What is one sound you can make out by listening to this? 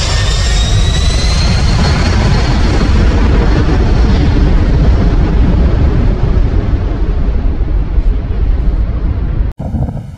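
A large jet aircraft roars low overhead with a high engine whine that slowly falls and fades as it flies away.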